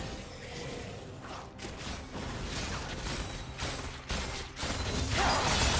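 Fantasy spell effects crackle and burst as a battle rages.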